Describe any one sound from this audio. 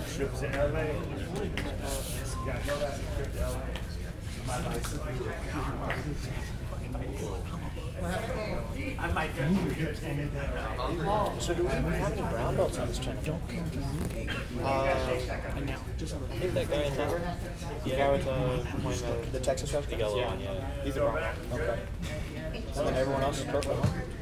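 Men talk in the background of a large echoing hall.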